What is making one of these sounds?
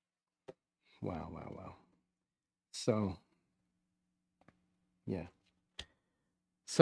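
An elderly man speaks slowly and calmly through a microphone, with pauses between phrases.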